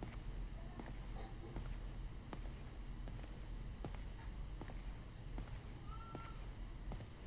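Heavy footsteps thud on a hard floor in a large echoing hall.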